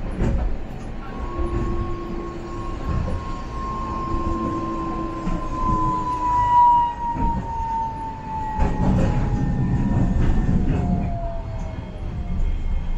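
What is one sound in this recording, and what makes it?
A tram's motor whines with a falling pitch as it slows.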